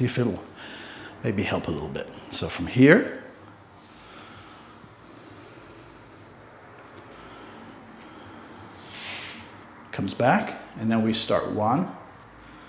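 A middle-aged man speaks calmly and clearly, close to a microphone.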